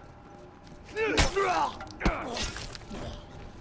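Heavy punches thud into a body.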